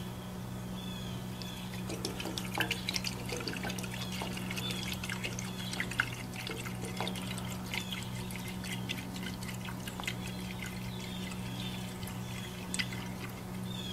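Fuel glugs and trickles as it is poured into a tank.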